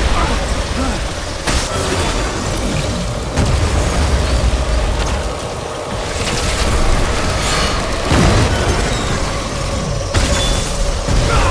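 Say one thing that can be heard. A deep rumbling roar booms and swells.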